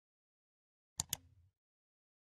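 A mouse button clicks sharply.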